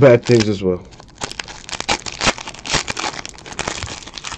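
A foil card wrapper crinkles and tears in someone's hands.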